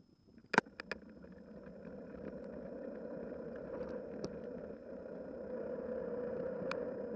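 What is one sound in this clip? Tyres roll on the road, growing louder as the car speeds up.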